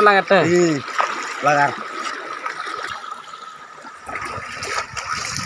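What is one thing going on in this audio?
Water splashes nearby.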